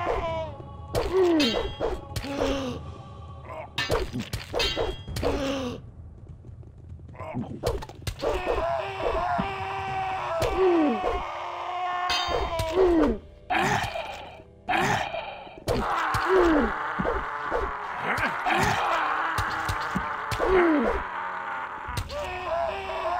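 A blade swishes through the air in quick slashes.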